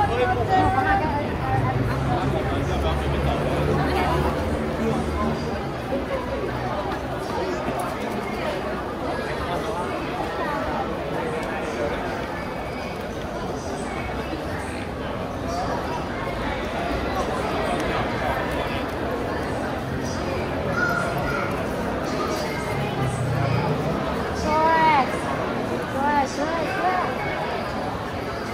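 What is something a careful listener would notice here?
A crowd of men and women chatter all around in a busy echoing street.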